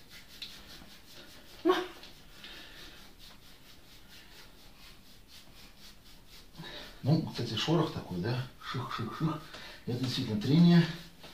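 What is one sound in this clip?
Hands rub and knead over bare skin.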